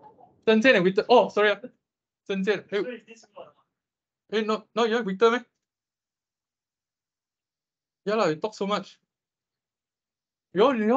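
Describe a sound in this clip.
A young man talks calmly through an online call microphone, in short bursts with pauses.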